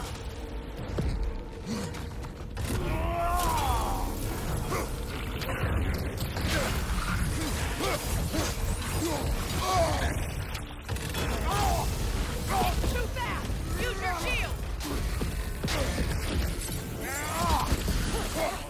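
Weapons clash and thud in a game fight.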